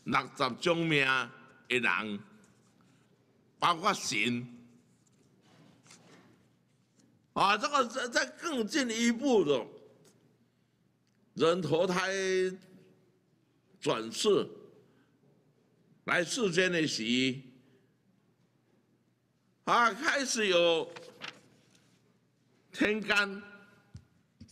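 An elderly man speaks slowly and with emphasis into a microphone, pausing between phrases.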